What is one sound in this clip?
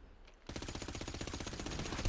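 A pistol fires shots nearby.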